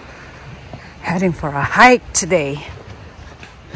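A young girl calls out brightly nearby.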